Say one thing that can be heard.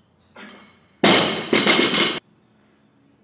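A loaded barbell clanks and rattles as it is set down on the floor.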